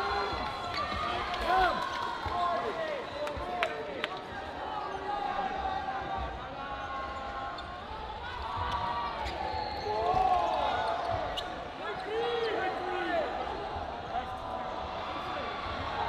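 Many players shout and chatter in an echoing indoor hall.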